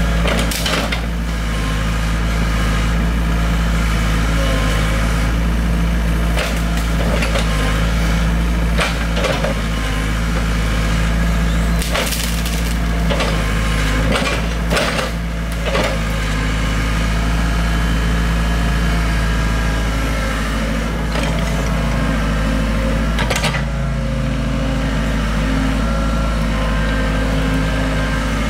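An excavator's hydraulics whine as its arm moves.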